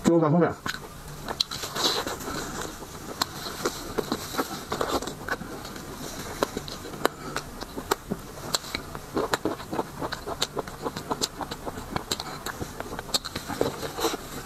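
A man chews and smacks his lips loudly close to a microphone.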